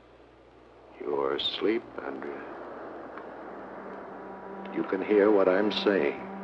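A man speaks in a low, menacing voice close by.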